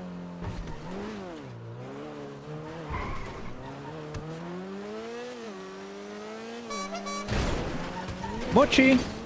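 A car engine revs up and down, changing pitch as gears shift.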